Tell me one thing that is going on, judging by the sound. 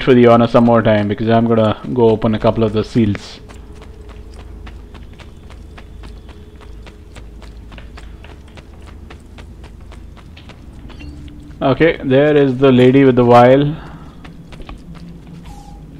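Footsteps run quickly over stone in an echoing passage.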